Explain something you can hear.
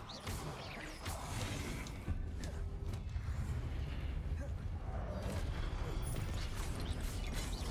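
Heavy stone blows thud and rumble.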